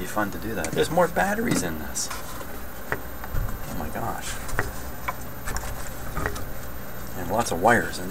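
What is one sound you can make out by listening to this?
A wooden tray knocks and scrapes as it is shifted and turned.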